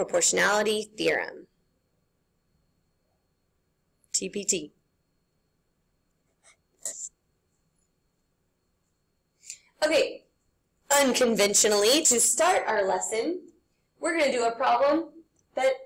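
A young woman talks calmly through an online call, in short bursts with pauses.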